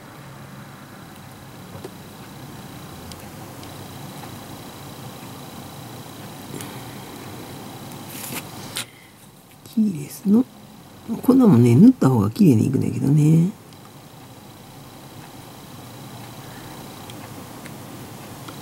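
Fingers press and rub a small plastic part with faint scraping.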